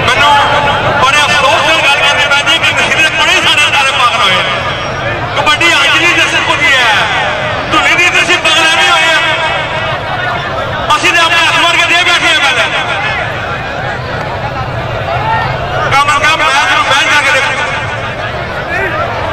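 Men in the crowd shout and cheer loudly in bursts.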